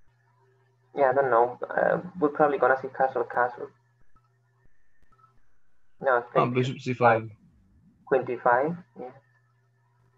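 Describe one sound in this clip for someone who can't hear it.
A boy talks calmly through an online call.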